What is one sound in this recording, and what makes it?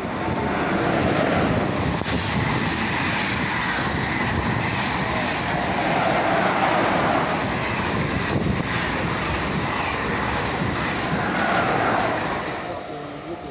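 A high-speed train rushes past close by with a loud, roaring rumble.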